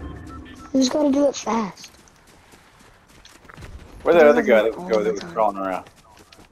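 Quick footsteps rustle through tall grass.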